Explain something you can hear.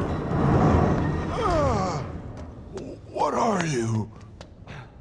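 A man speaks tensely, close by.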